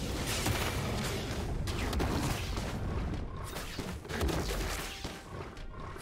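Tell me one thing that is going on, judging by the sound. Video game spell effects crackle and whoosh in a fight.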